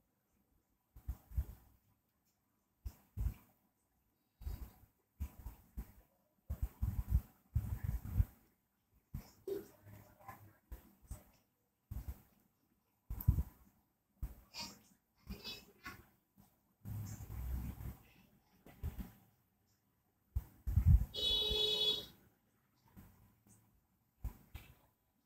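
Cords rustle and brush softly as hands handle them, close by.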